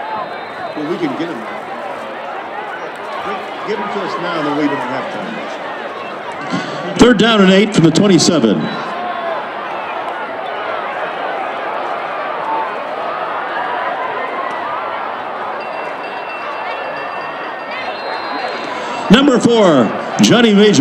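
A large crowd murmurs and cheers outdoors throughout.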